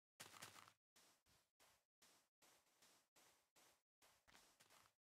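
Footsteps shuffle softly on sand.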